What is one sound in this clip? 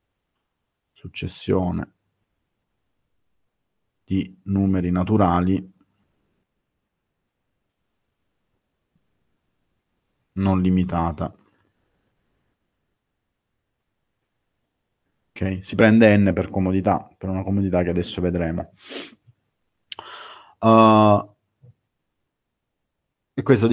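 A man speaks calmly into a microphone, in short bursts with long pauses, as heard over an online call.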